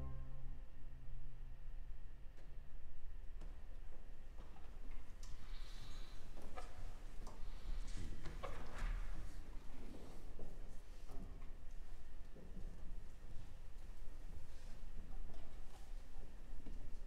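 An orchestra plays softly in a large, reverberant concert hall.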